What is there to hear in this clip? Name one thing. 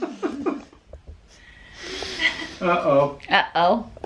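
A woman laughs further away.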